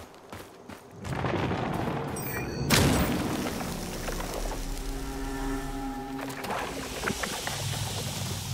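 A glowing crystal bursts with a loud, rushing shimmer.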